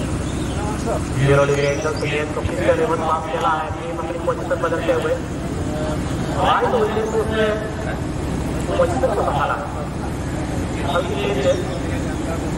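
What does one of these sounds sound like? Young men shout and cheer from the sideline outdoors.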